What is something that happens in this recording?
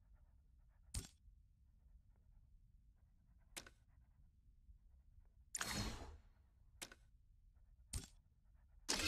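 Short interface clicks sound a few times.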